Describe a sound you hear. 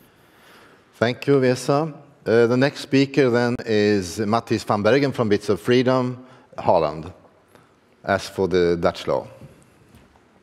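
An elderly man speaks with animation through a microphone in a large hall.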